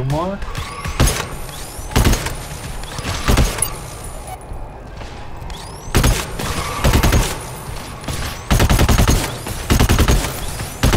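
A heavy gun fires loud bursts of shots.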